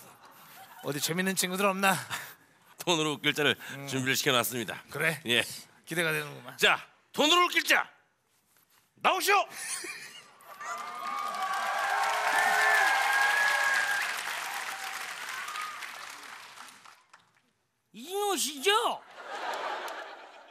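Another man shouts excitedly through a microphone.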